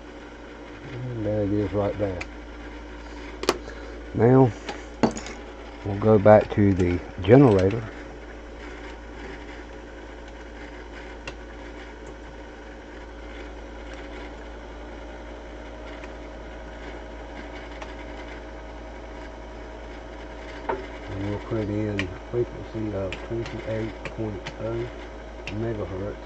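Metal clicks and taps as a hand works at an electronic device's controls.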